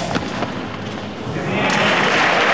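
A ball smacks off rackets and glass walls in a large echoing hall.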